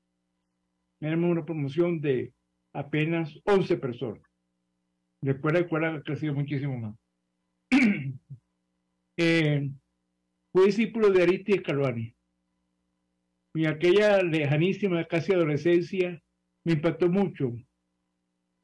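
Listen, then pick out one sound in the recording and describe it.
An elderly man speaks calmly over an online call, in short phrases with pauses.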